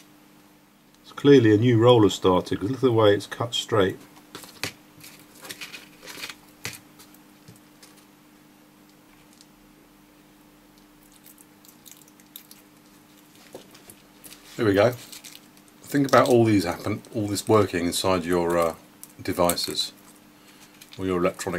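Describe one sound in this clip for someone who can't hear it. Thin metal foil crinkles softly between fingers.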